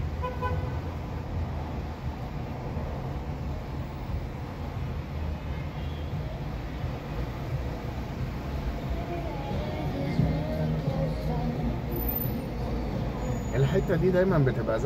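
Traffic rumbles all around on a busy street.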